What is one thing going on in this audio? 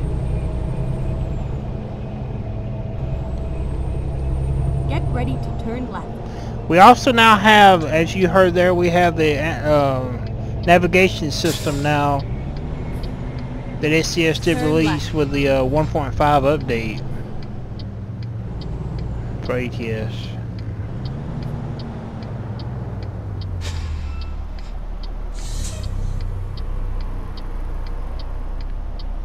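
A truck engine drones steadily, its pitch dropping as the truck slows.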